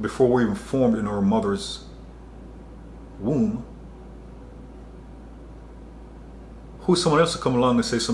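A man speaks close to a microphone with expression, pausing between phrases.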